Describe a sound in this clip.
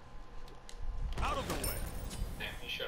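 A bright chime rings out with a whooshing burst.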